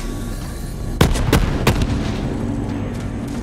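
A laser gun fires a few sharp shots.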